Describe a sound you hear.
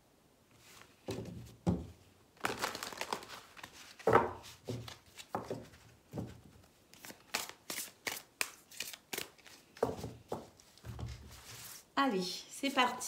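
Playing cards riffle and slap together as they are shuffled.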